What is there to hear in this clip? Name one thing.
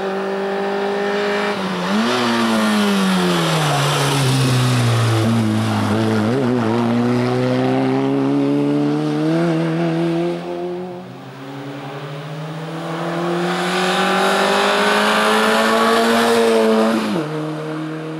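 A rally car engine revs hard and roars past close by, rising and falling in pitch through gear changes.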